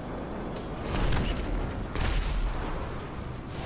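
A jet crashes into the ground with a loud booming impact.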